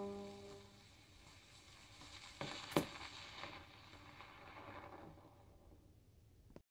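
A vinyl record crackles and clicks softly as it plays on a turntable.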